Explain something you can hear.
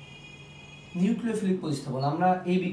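A young man speaks clearly and with animation, close by.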